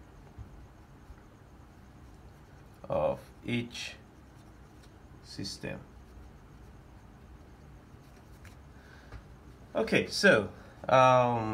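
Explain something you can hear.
A marker pen scratches and squeaks faintly on paper.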